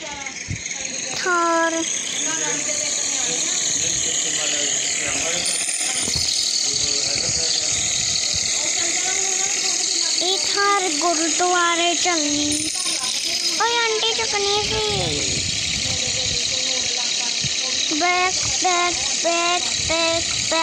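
A small cartoon car engine revs and hums steadily.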